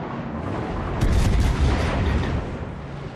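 Naval guns fire in heavy, booming salvos.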